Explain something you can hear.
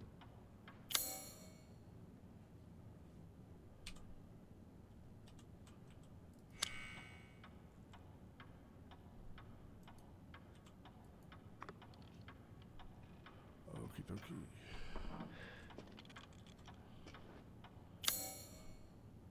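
A menu chime sounds sharply a few times.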